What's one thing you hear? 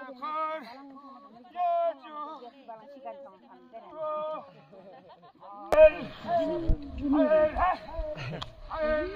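Men sing a chanting work song outdoors.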